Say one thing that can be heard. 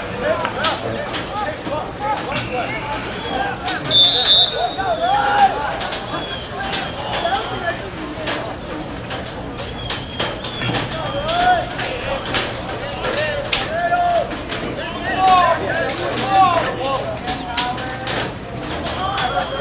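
Lacrosse sticks clack sharply against each other.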